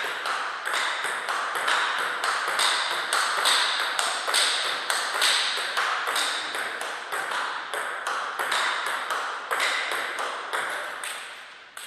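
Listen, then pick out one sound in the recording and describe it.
A table tennis ball clicks back and forth between paddles and the table.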